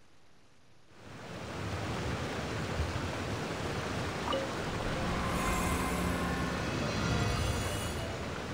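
A waterfall rushes loudly nearby.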